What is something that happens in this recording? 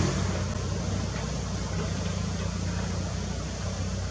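Rocks scrape and clatter under an excavator bucket.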